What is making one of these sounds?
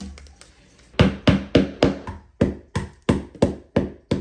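A hammer strikes wood in quick, sharp blows.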